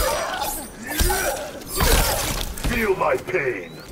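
A body crashes to the ground.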